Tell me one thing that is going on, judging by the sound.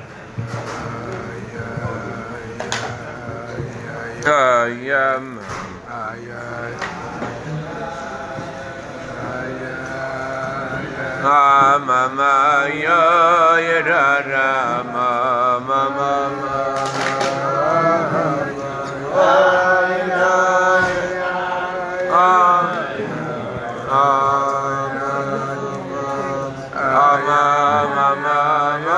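A middle-aged man speaks and chants with animation close by.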